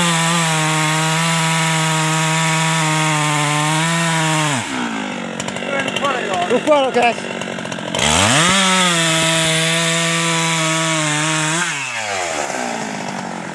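A chainsaw roars loudly, dropping away and then revving up again before winding down.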